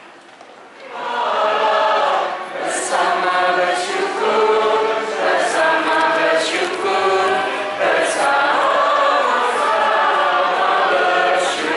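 A large congregation sings together in an echoing hall.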